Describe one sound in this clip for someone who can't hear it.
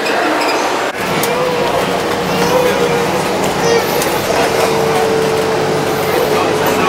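A bus engine hums steadily from inside the bus as it rides.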